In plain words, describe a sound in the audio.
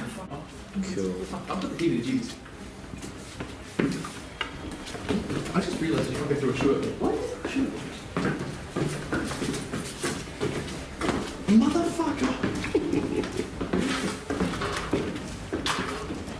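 A young man talks quietly nearby.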